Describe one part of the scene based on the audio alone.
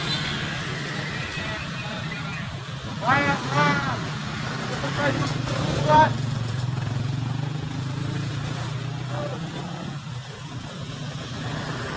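Motorbikes ride past on a wet road.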